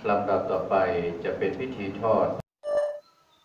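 A man chants steadily over a loudspeaker.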